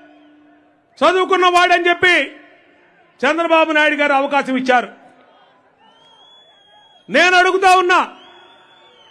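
A man speaks forcefully into a microphone over loudspeakers, in short bursts with pauses.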